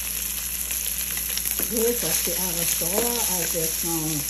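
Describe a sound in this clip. A metal spoon scrapes and stirs in a frying pan.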